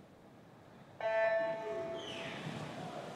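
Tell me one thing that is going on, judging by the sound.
An electronic start signal beeps loudly.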